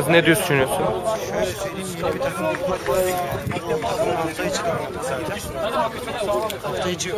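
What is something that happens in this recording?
A man talks steadily and calmly close to a microphone.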